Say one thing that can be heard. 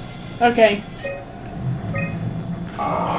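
A computer terminal gives short electronic beeps.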